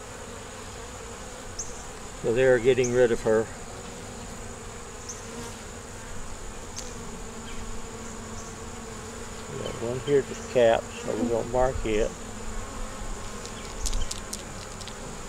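Honeybees hum over an open hive.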